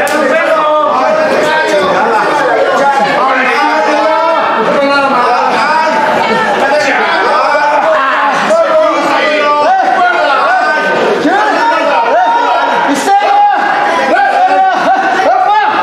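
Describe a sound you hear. A crowd of spectators shouts and cheers.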